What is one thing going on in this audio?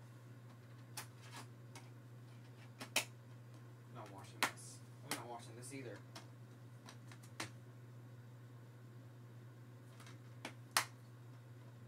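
Plastic items clatter and click as a boy handles them.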